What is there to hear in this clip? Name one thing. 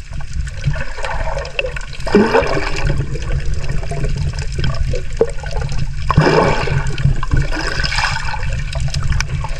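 Bubbles gurgle and rush in bursts.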